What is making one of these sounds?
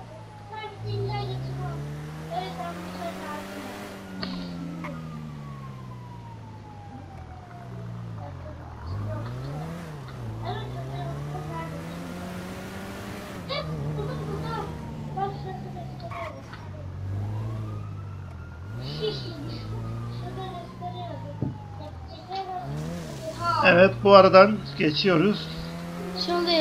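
A car engine revs up and down as a car drives and turns.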